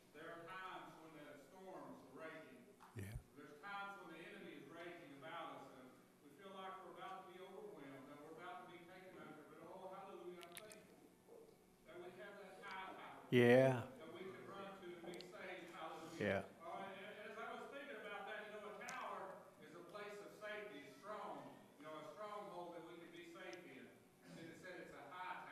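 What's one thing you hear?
An elderly man speaks with animation through a microphone, with some echo.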